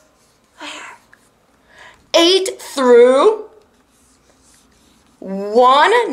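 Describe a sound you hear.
A young woman reads aloud close by in an animated, sing-song voice.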